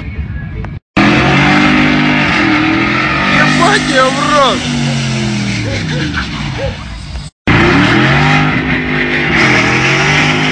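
A heavy truck engine roars loudly nearby.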